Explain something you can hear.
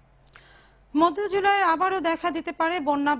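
A young woman reads out calmly through a microphone.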